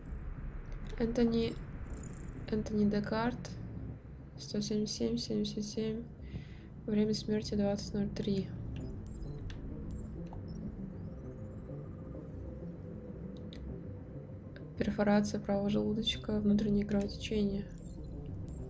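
A young woman talks calmly into a microphone, close by.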